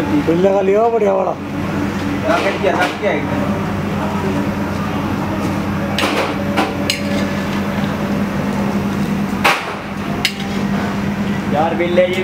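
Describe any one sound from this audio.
Oil sizzles and bubbles steadily in a frying pan.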